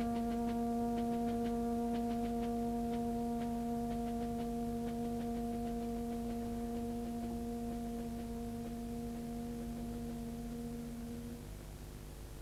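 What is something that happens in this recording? A wind band holds a long, loud chord that then fades away.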